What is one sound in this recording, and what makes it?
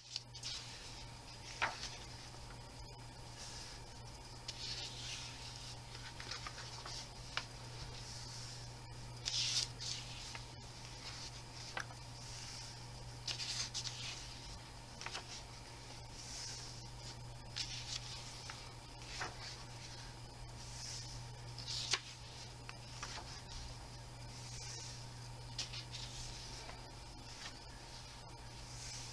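Paper pages of a book rustle and flap as they are turned.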